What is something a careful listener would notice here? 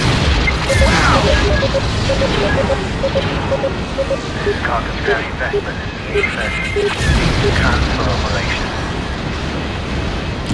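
A starfighter engine roars steadily.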